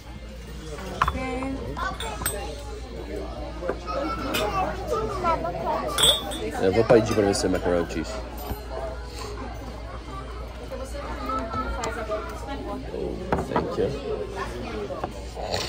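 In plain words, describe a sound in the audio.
Mugs clink on a table.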